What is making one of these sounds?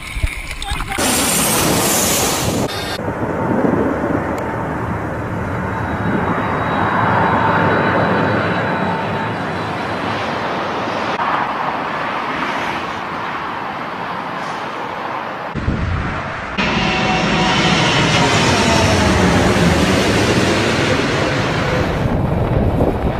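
Jet engines roar loudly as an airliner passes close by.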